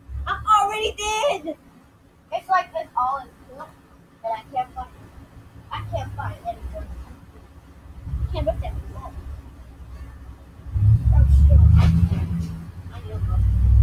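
A boy talks with animation nearby.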